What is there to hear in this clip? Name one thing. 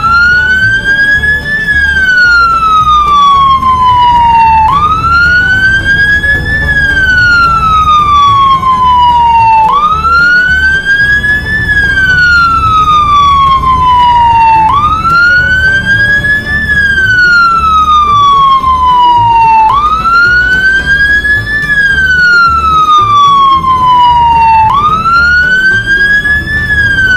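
A siren wails, rising and falling over and over.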